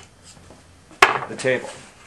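A metal level knocks down onto a wooden board.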